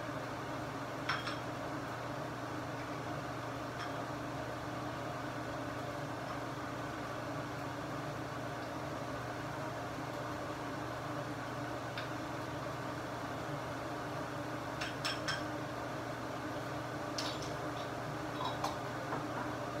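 Utensils clink and clatter against cookware now and then.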